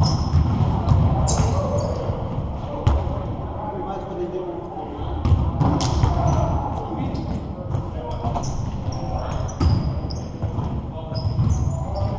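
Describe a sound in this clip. Young men call out and talk across the hall.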